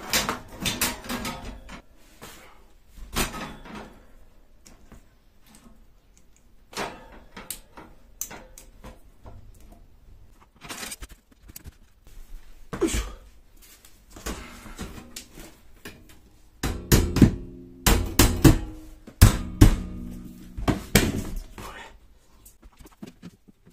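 Metal shelf poles knock and clatter together.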